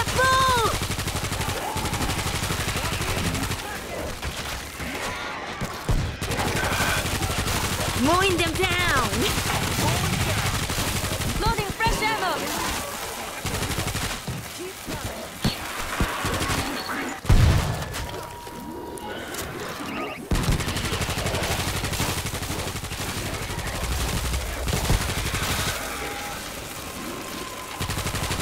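Zombies snarl and groan.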